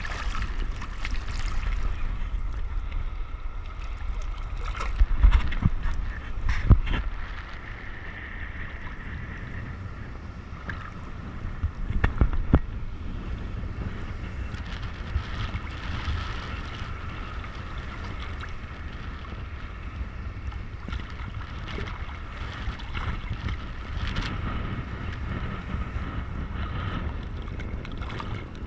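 Water sloshes and splashes close by.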